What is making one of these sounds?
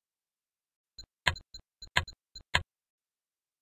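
Short electronic game beeps sound in quick succession.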